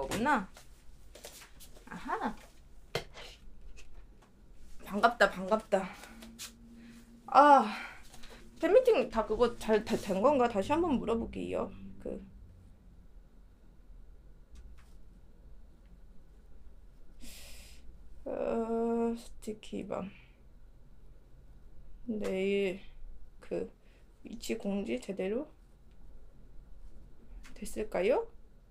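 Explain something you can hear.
A young woman speaks close to a microphone, casually and with pauses.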